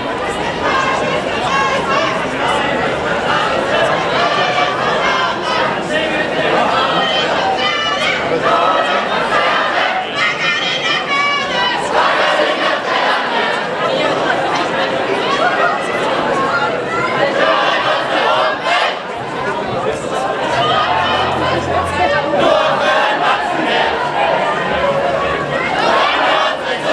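A large crowd of men and women chatters and calls out all around, outdoors.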